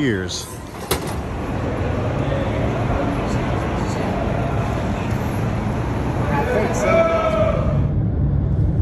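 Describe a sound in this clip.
Traffic rumbles past nearby.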